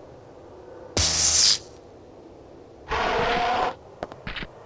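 A heavy door hisses and slides open.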